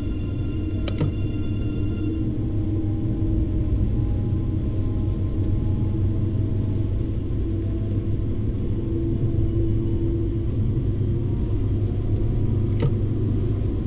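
Train wheels clack over a rail joint.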